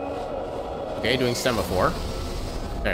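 A magical shimmering chime rings out.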